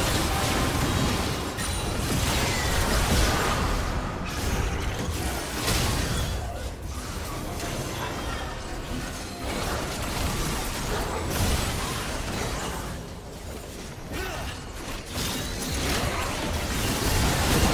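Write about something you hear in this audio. Magical blasts whoosh and crackle in a busy fantasy battle.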